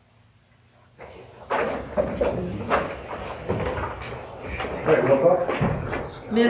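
Chairs scrape and shuffle as people sit down.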